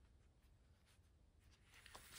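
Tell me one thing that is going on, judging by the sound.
Scissors snip.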